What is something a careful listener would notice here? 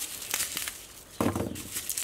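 Dry onion stalks rustle in hands.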